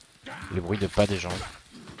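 An arrow strikes a creature with a wet thud.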